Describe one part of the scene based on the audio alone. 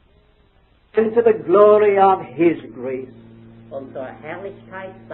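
An elderly man speaks calmly, heard through an old, thin-sounding recording.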